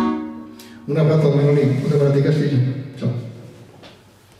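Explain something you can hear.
An elderly man sings loudly into a microphone.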